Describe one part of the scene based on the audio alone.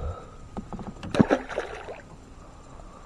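A fish splashes into the water as it is released.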